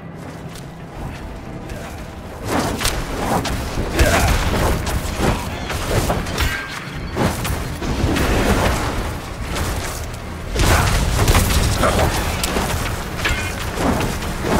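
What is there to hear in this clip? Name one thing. Spells crackle and blast as monsters are struck in a game.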